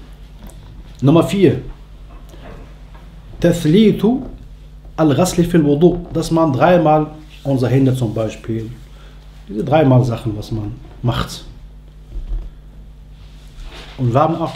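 A man speaks calmly and close up, with pauses between phrases.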